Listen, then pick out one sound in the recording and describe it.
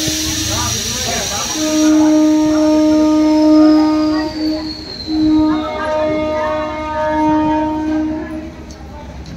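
An electric local train stands at a platform, its equipment humming.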